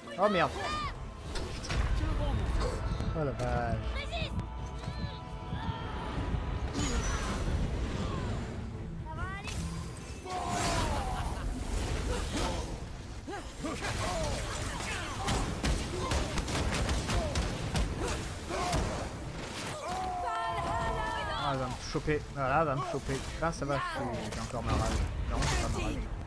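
Heavy blows and crashes of a fight ring out.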